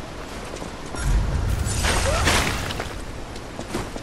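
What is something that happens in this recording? A sudden blast of flame roars and crackles.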